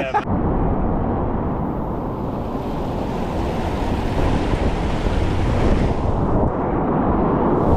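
Whitewater rushes and roars close by.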